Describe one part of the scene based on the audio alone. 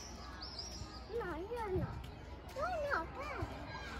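A young child babbles close by.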